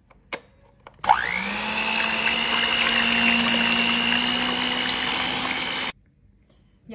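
An electric hand mixer whirs loudly and steadily.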